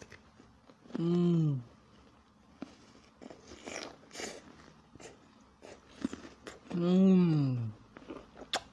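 A young man hums with pleasure, close up.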